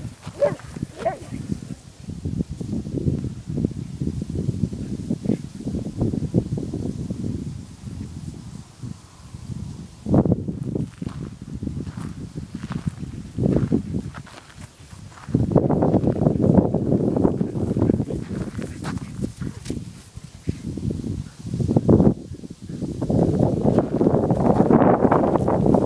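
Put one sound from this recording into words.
Dogs run across dry grass.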